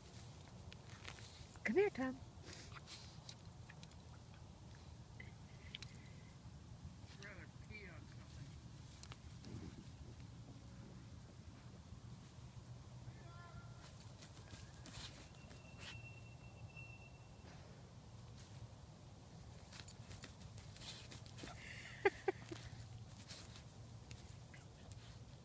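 A small dog sniffs and rustles through dry grass close by.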